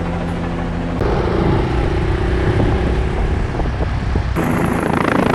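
A motorcycle engine hums on the road.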